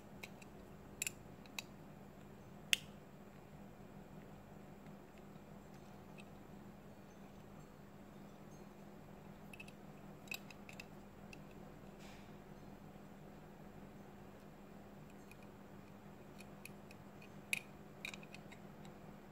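Small plastic parts click and snap under metal tweezers.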